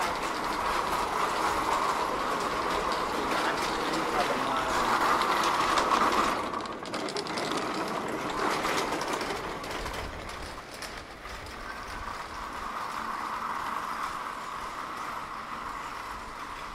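A steady murmur of a busy city street carries outdoors.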